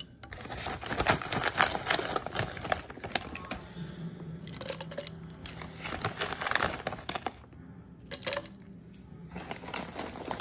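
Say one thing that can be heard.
Hard candy pieces rattle and clatter inside a plastic cup.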